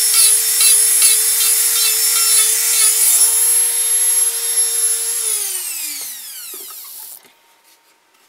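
A rotary tool whines loudly while grinding wood, then winds down and stops.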